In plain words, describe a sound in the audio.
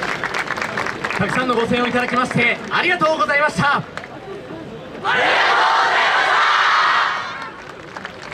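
A crowd of dancers shouts together in chorus.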